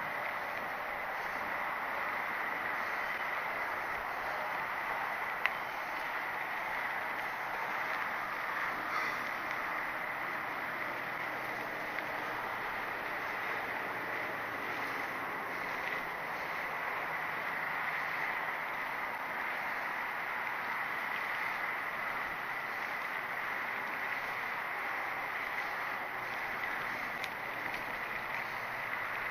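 Mountain bike tyres roll over a dirt trail.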